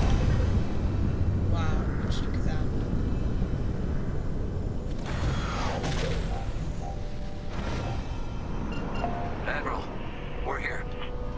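A spaceship engine rumbles low and steady.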